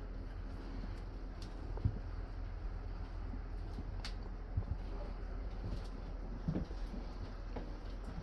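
A train rumbles steadily as it moves along.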